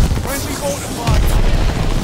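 Gunfire rattles in short, loud bursts.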